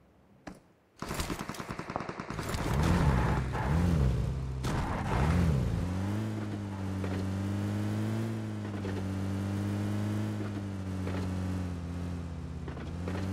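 A car engine revs and then hums steadily.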